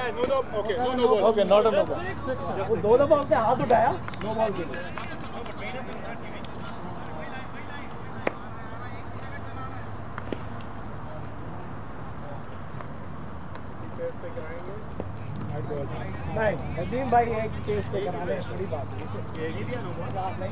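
Men call out to each other outdoors at a distance.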